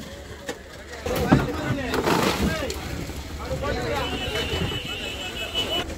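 Fish slap and slide into plastic crates.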